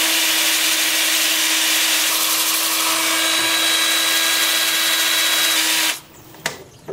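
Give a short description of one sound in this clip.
A power drill whirs steadily.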